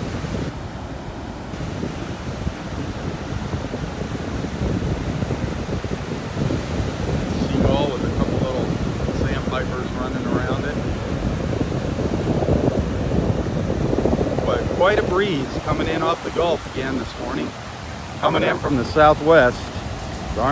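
Small waves wash and break on a beach close by.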